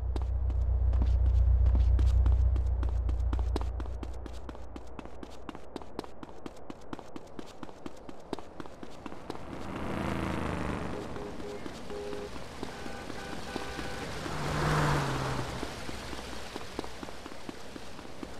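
Quick footsteps slap on pavement as a man runs.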